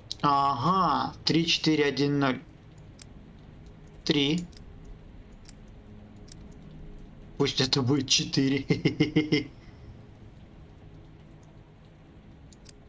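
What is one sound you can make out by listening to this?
A combination lock's dials click as they turn.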